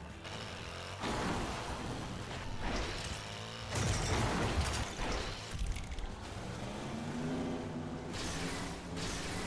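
A boost rushes and whooshes in bursts.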